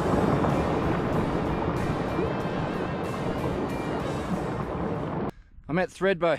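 A stream of water rushes and burbles over rocks close by.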